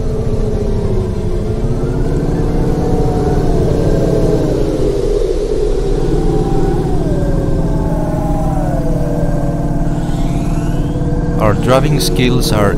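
A futuristic car engine hums steadily, its pitch gliding up and down as it speeds along.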